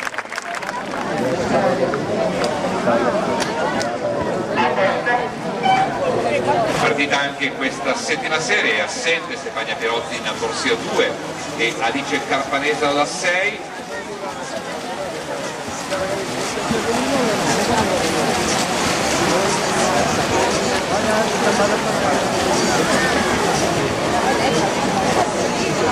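A crowd of spectators cheers and shouts.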